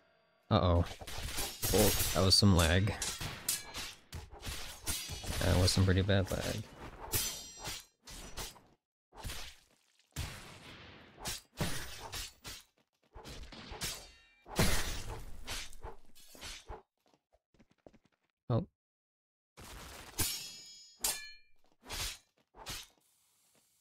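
Magic blasts burst with crackling impacts.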